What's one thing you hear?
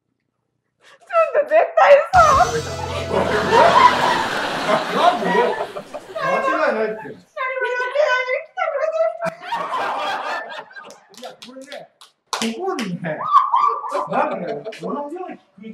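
A group of people cheer and laugh loudly nearby.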